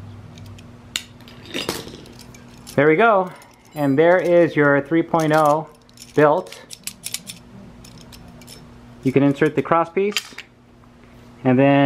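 Metal parts clink together as they are handled.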